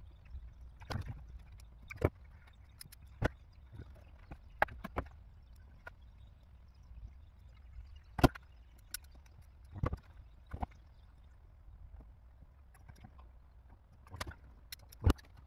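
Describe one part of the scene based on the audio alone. Plastic parts click and knock sharply close by.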